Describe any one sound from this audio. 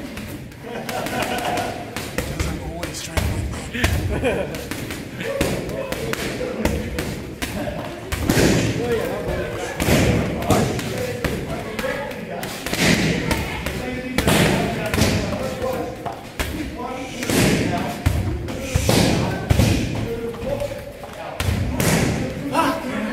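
Gloved punches thump repeatedly against a heavy bag.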